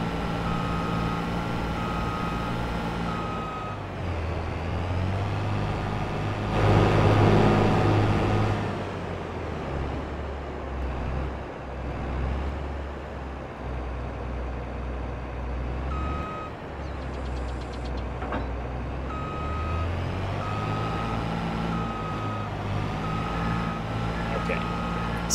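A combine harvester engine rumbles and hums steadily, rising and falling in pitch as it drives.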